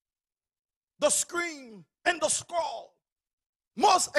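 A man speaks with emphasis into a microphone, in short bursts with pauses.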